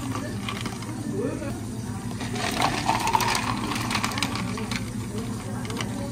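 Ice cubes clatter into plastic cups.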